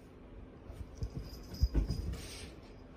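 A cat jumps down and lands with a soft thump.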